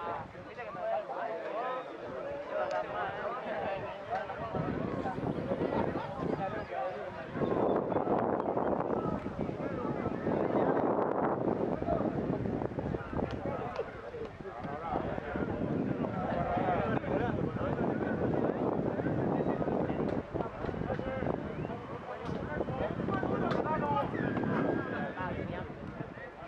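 Young rugby players shout to each other across an open field.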